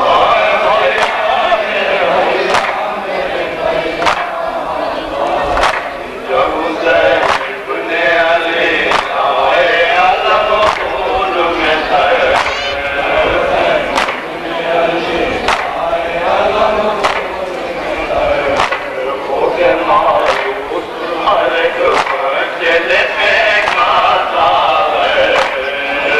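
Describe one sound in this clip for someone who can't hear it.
A crowd of men chants together.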